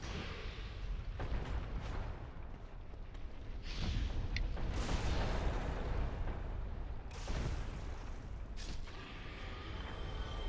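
Metal weapons clash and strike in a fight.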